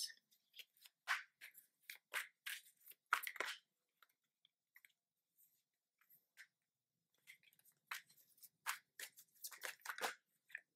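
Playing cards shuffle and tap against each other.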